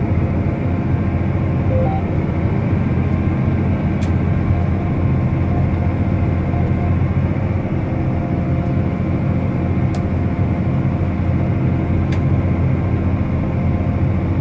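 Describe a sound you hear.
A tractor engine rumbles steadily inside a closed cab.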